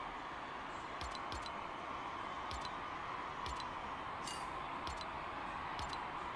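Short menu clicks sound again and again.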